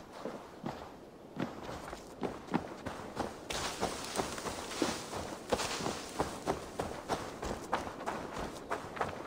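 Footsteps crunch quickly on dirt and grass.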